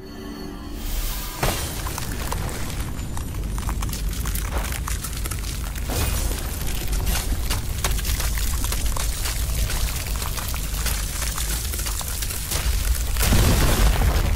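Ice cracks and groans with a deep rumble.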